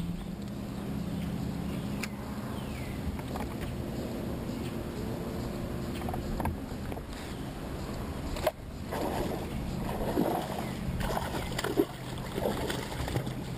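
A fishing reel whirs softly as line is wound in.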